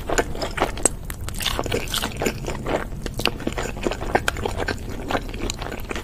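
Crispy fried chicken crunches as it is bitten.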